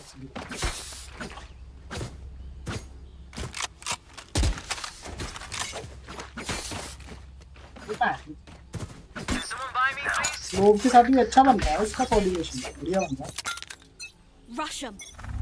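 Game weapons click and clatter as they are switched.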